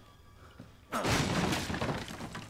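A wooden crate smashes and splinters apart.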